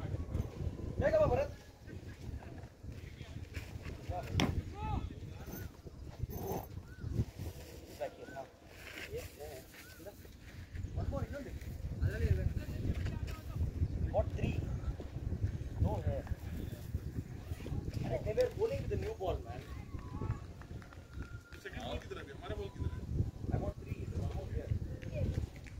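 Young men call out to one another across an open field, some distance away.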